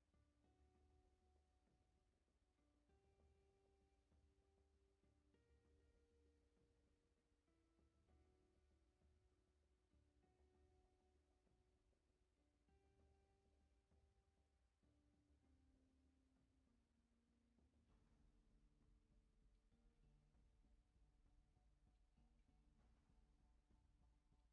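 Calm electronic music plays with slow, steady notes.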